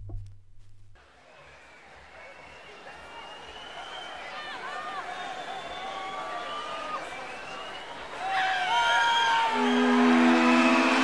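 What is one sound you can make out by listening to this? Music plays from a record, slowly growing louder.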